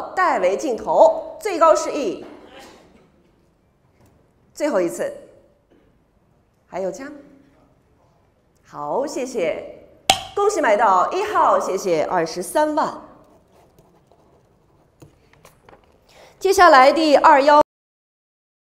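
A young woman speaks clearly into a microphone, announcing with animation.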